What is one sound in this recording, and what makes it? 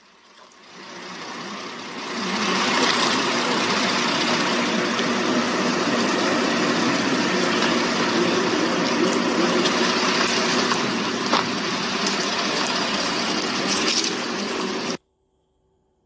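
A rattlesnake rattles with a steady, loud buzzing hiss close by.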